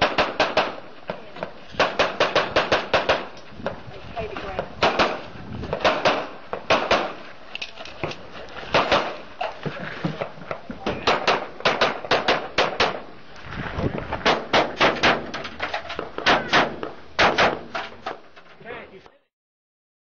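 Pistol shots ring out in rapid bursts outdoors.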